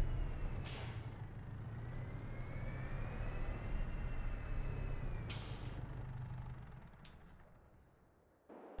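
A tractor engine rumbles steadily, then dies away.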